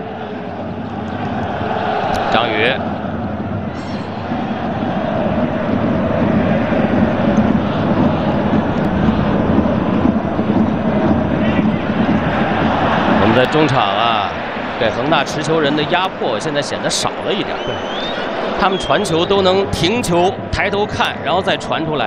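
A large stadium crowd roars and chants steadily in the distance.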